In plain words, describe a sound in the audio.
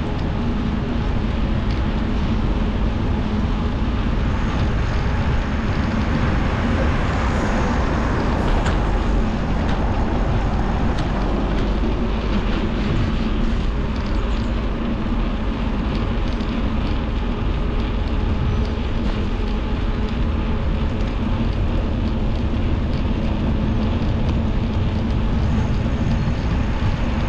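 Wind rushes and buffets steadily.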